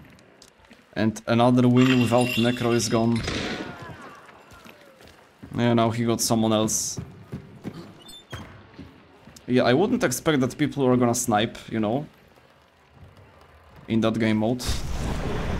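A young man speaks into a close microphone in short, lively bursts.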